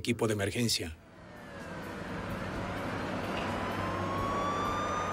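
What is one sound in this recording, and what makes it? A car engine hums and revs as cars drive past.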